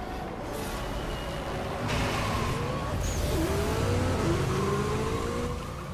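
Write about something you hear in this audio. Tyres screech as a car pulls away.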